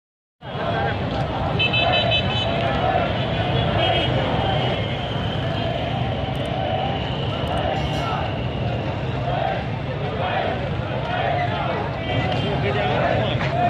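A large crowd of men murmurs and talks outdoors close by.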